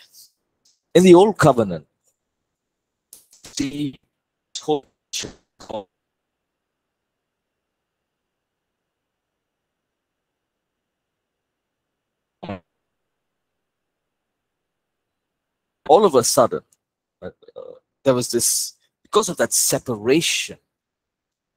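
A man talks with animation over an online call, pausing now and then.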